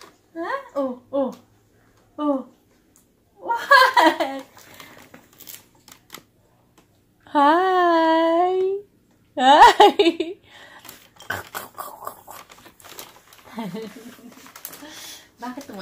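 A young woman talks playfully and sings up close to a baby.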